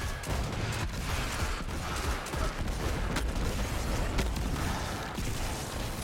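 Explosions rumble and blast.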